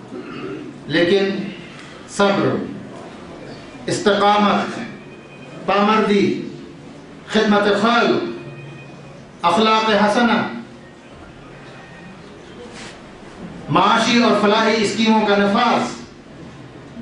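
A man speaks slowly and deliberately into a microphone, in bursts with pauses.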